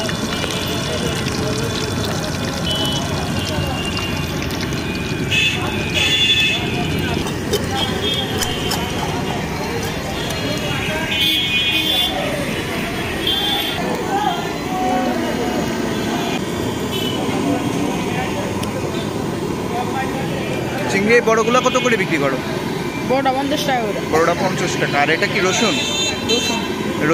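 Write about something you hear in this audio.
Oil sizzles and bubbles steadily in a frying pan.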